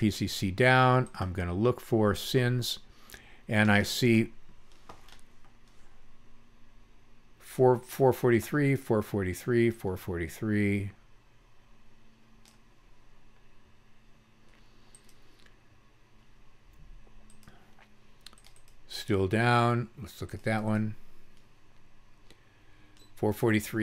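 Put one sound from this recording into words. An elderly man speaks calmly and close to a microphone, explaining in short bursts with pauses.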